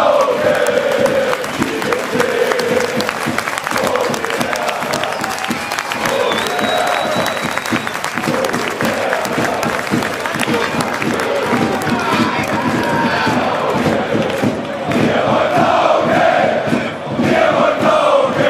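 A large stadium crowd chants and sings loudly all around.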